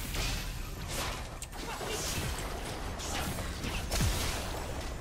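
Game characters' attacks clash with sharp hits.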